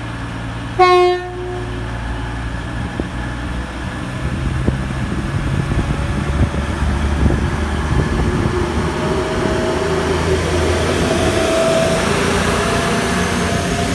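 A diesel train engine rumbles and grows louder as it passes close by.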